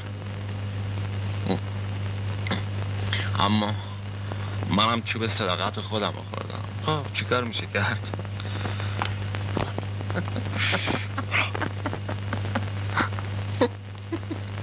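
A young man speaks quietly and with feeling, close by.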